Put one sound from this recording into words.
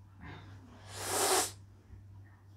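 A young woman sighs loudly close by.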